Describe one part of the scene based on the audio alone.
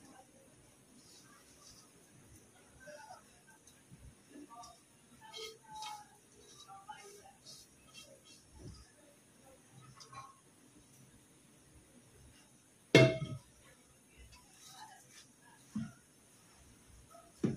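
Rice is scraped and scooped from a pan into a metal pot with soft rustling and light taps.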